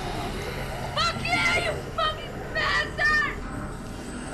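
A woman screams in terror nearby.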